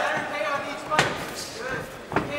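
A kick lands with a sharp slap on a body.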